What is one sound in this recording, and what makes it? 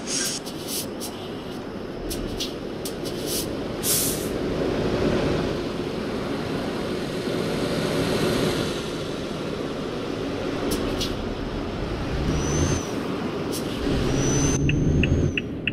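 A truck engine rumbles steadily at idle.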